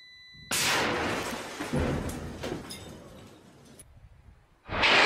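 An explosion booms close by and its roar slowly fades.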